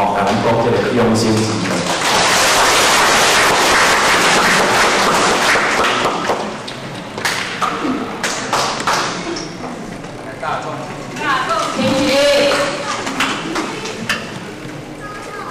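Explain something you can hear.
A man speaks through a microphone and loudspeakers in a large echoing hall.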